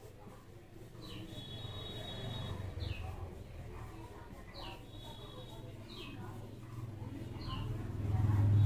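A marker squeaks in short strokes on a whiteboard.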